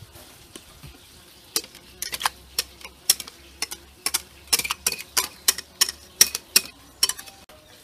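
Thick batter pours and plops into a pan.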